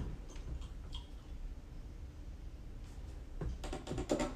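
A computer keyboard clicks with typing.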